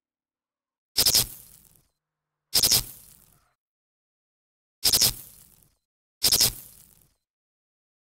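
Electric cables buzz and crackle in short bursts as they connect.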